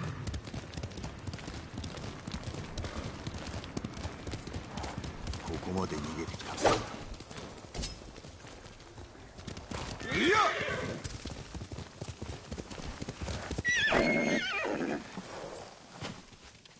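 Horse hooves gallop quickly over a dirt path.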